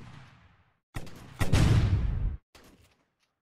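A game grenade explodes with a loud boom.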